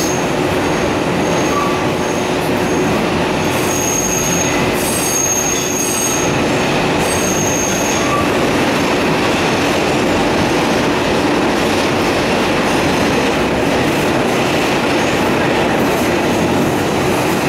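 A subway train rumbles loudly along the rails.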